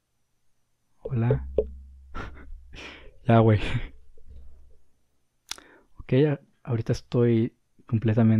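A man talks with animation, close up.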